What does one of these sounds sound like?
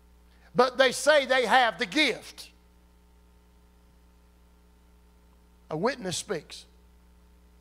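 A middle-aged man speaks with animation through a microphone.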